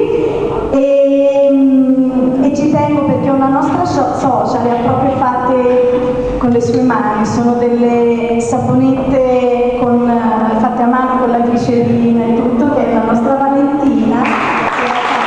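A woman sings loudly into a microphone close by.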